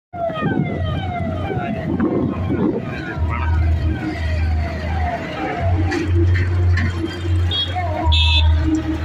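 Cars and an auto-rickshaw drive past on a road.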